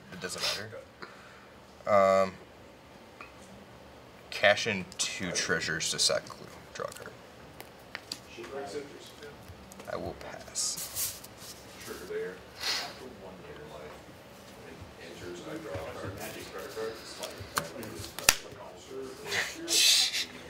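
Playing cards slide and tap softly on a cloth mat.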